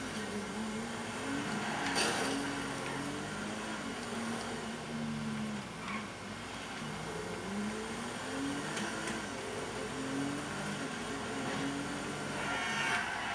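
A car engine hums and revs up and down as the car drives along.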